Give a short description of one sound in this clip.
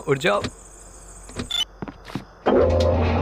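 A metal lever clunks into place.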